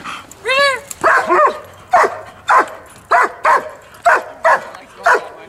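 A dog barks repeatedly at close range.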